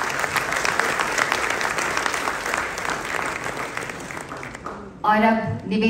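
A crowd applauds in a large hall.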